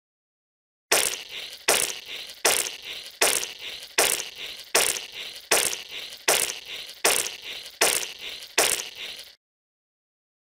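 Chocolate sauce squirts out in a quick series of wet bursts.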